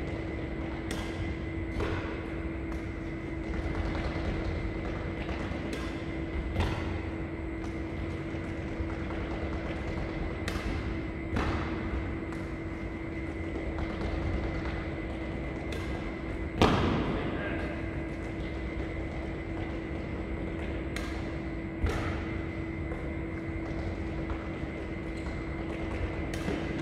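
Badminton rackets strike a shuttlecock with sharp pops, back and forth, in an echoing hall.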